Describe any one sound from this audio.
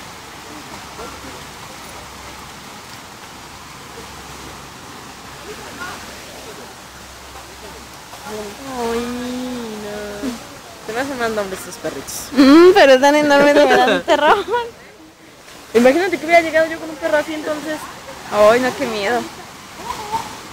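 A small waterfall pours steadily.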